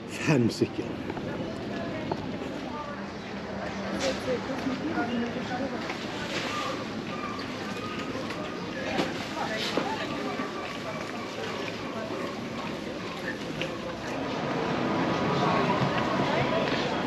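People nearby chatter faintly in a busy outdoor crowd.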